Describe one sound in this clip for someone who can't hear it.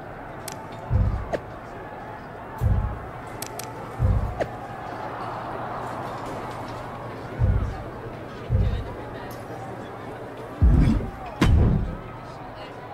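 Soft low thumps sound as game menu options are selected.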